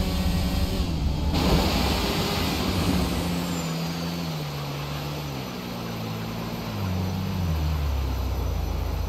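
A motorcycle engine roars at speed, its pitch shifting up and down.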